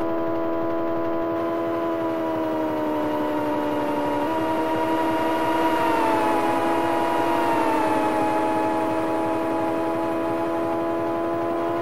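A synthesized racing engine drones steadily, its pitch dipping and jumping as the gears change.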